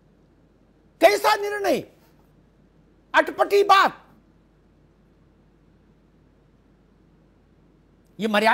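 A man speaks with animation through a microphone in short bursts.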